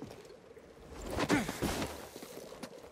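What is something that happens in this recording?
A figure lands heavily on the ground with a thud.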